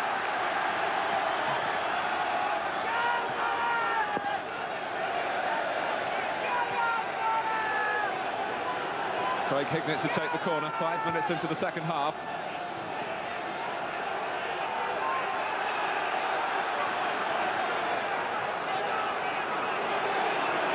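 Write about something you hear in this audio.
A big crowd roars in a steady wash of noise.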